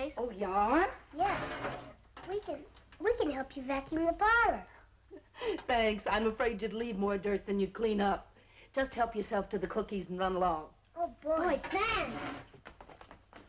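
A young boy speaks eagerly.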